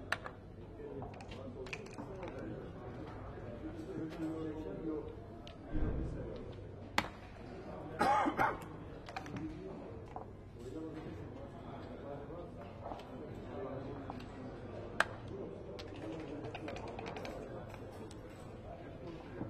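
Checkers click and slide on a board.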